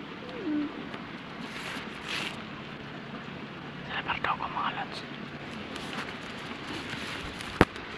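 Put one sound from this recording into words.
Leaves rustle as someone pushes through thick plants.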